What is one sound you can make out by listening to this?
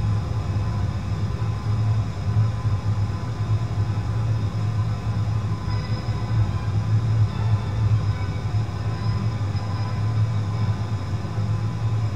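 Jet engines hum and rumble steadily as an airliner taxis.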